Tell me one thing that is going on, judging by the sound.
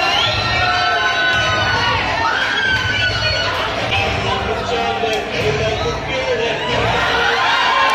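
Loud pop music plays over loudspeakers in a large echoing hall.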